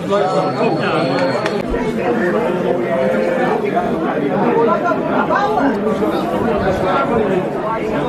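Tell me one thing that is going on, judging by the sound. Many people chatter around, in a busy indoor crowd.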